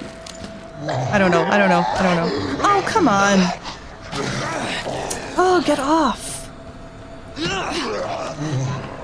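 A young woman speaks into a close microphone.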